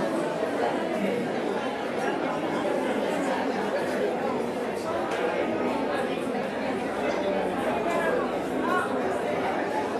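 A crowd of people murmurs quietly nearby.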